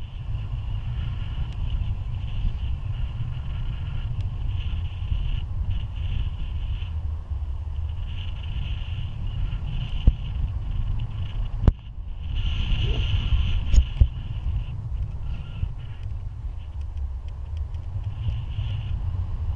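A man talks calmly close by, partly drowned by the wind.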